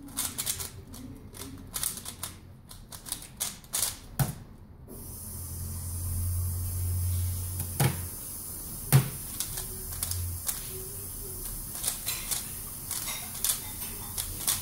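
A plastic puzzle cube clicks and rattles as it is twisted quickly.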